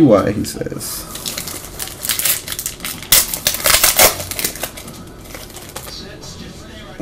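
A plastic card sleeve crinkles and rustles as it is handled.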